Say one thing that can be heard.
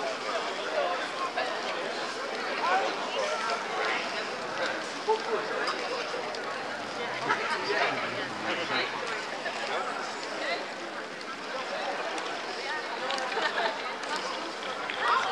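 A crowd of people chatter in an open outdoor space.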